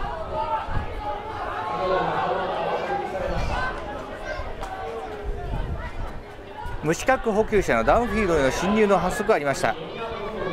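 A group of young men cheer and shout outdoors in the distance.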